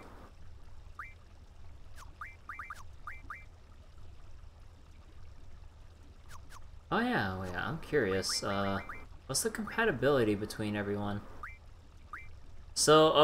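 Short electronic blips sound as a menu cursor moves.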